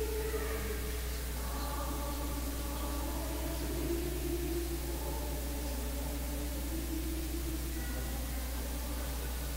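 A man chants slowly in a large echoing hall.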